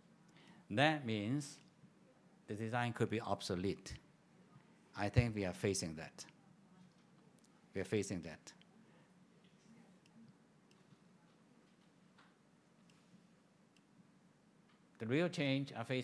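An elderly man speaks calmly and slowly through a microphone, with long pauses.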